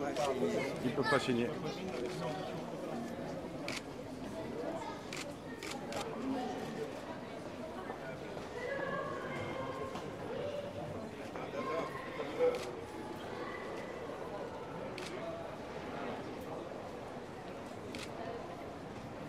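A crowd of men and women chatter in an echoing hall.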